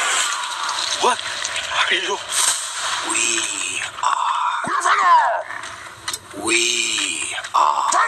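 A deep, growling monstrous voice speaks slowly.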